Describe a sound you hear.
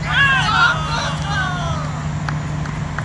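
Several men shout loudly across an open field.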